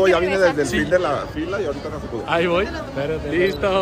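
A man speaks excitedly nearby.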